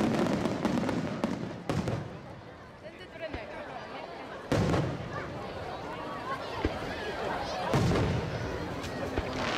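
Fireworks crackle and sizzle as sparks fall.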